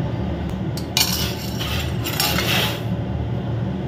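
A metal ladle scrapes and clinks against a steel pot.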